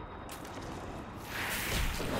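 Spells crackle and blast in a fight.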